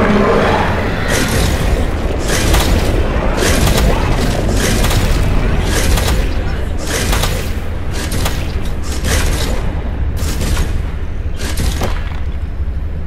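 Heavy blows strike a submarine's hull again and again.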